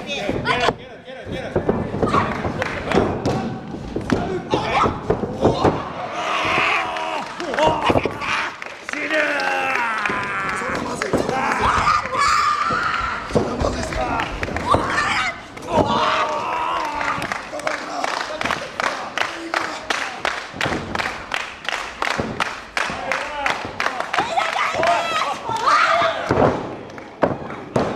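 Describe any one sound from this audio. Bodies thud heavily onto a ring mat.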